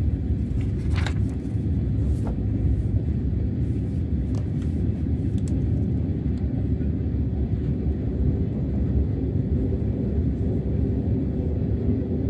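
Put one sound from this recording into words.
Paper rustles and crinkles in someone's hands.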